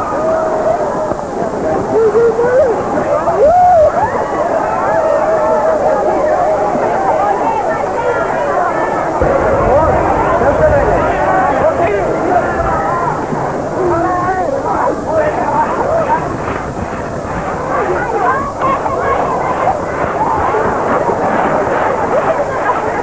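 A large crowd of men, women and children chatters and shouts outdoors.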